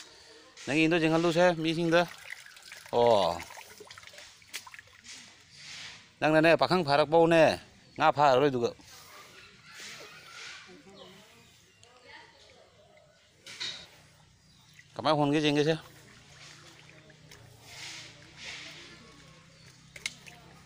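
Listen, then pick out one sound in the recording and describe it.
Water splashes as a net is dragged through it.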